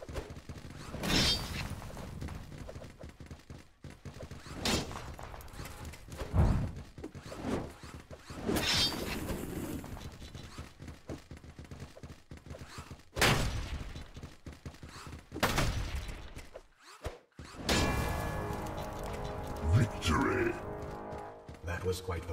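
Game weapons fire in loud bursts and blasts.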